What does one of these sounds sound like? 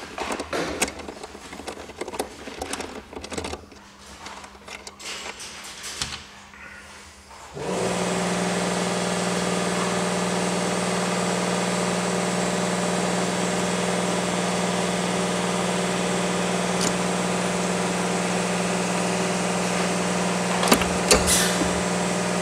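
Metal parts click and clatter as a battery terminal is handled.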